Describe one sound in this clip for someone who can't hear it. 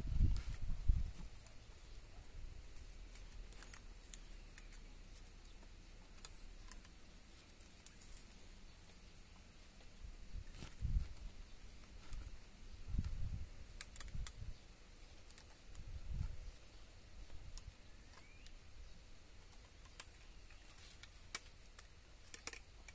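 Wire clicks and scrapes against a wooden post.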